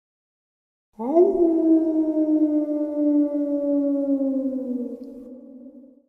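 A werewolf lets out a long, loud howling roar that slowly fades.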